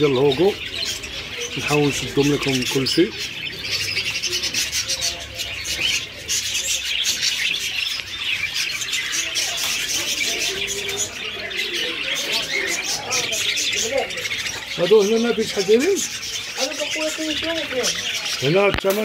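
Many budgies chirp and warble busily, close by.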